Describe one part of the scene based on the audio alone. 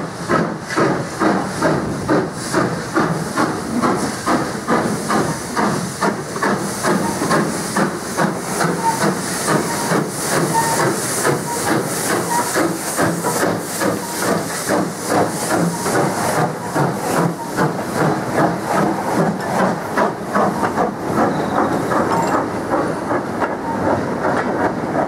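A steam locomotive chuffs rhythmically as it pulls away.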